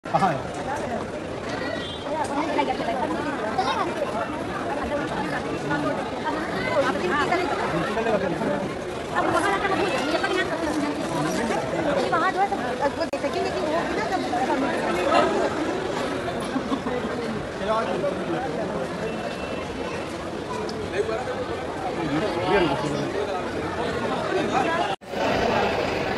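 A crowd of men chatter in a large echoing hall.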